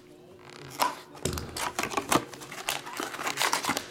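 A cardboard box lid flaps open.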